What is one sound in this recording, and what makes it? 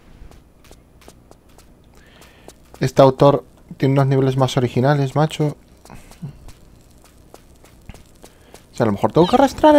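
Footsteps run quickly on hard ground.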